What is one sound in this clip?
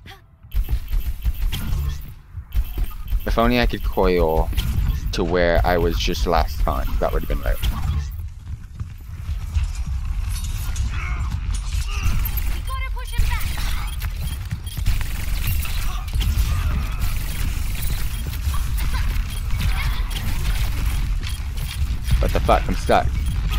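Rapid gunfire and explosions sound from a video game.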